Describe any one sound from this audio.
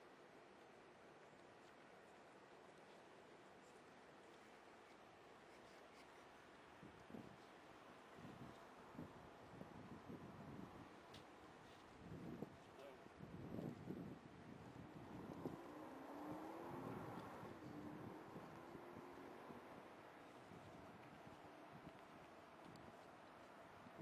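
Wind blows steadily outdoors by open water.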